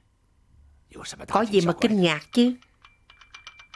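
An elderly man speaks loudly and hoarsely nearby.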